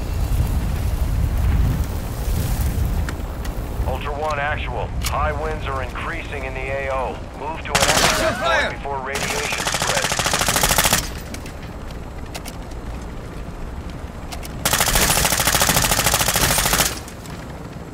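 A helicopter engine rumbles steadily.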